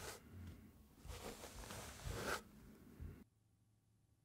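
Metal tines of a comb scratch and rattle close by.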